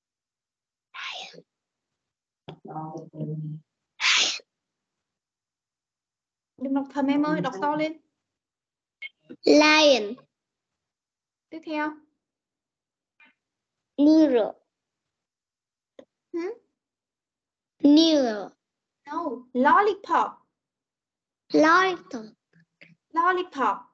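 A woman speaks slowly and clearly over an online call, saying words for a child to repeat.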